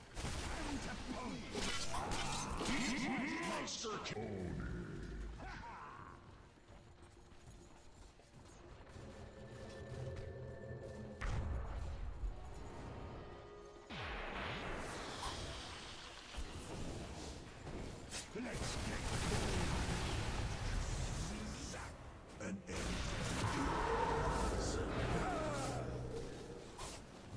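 Game combat effects clash and burst with spells and hits.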